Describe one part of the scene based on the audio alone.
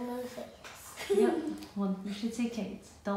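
A young girl laughs.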